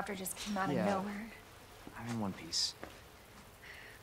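A young woman answers softly nearby.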